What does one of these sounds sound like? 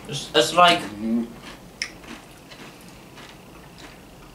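A young man crunches on a chip.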